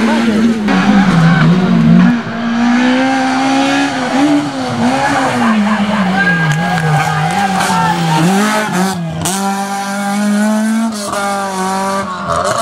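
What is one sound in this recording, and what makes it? A rally car engine revs hard, its pitch rising and falling as it climbs closer and passes.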